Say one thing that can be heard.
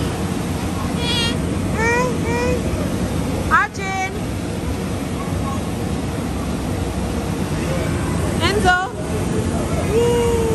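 Young children squeal and shout playfully nearby.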